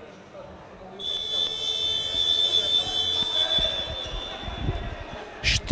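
A referee's whistle blows shrilly in a large echoing hall.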